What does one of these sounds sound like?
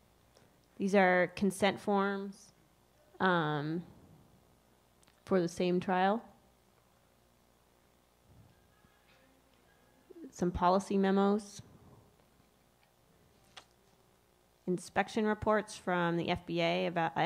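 A woman speaks calmly into a microphone, in bursts with pauses.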